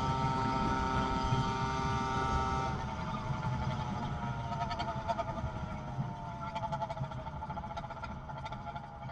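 Wind rushes past a moving bicycle.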